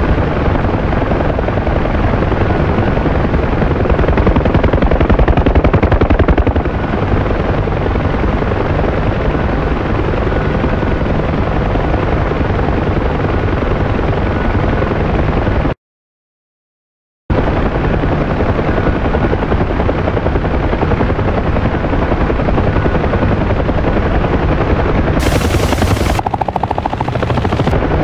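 A helicopter's rotor thumps and its engine roars steadily from inside the cabin.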